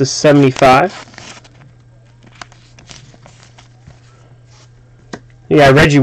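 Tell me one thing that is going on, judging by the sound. Trading cards rustle and slide softly against each other.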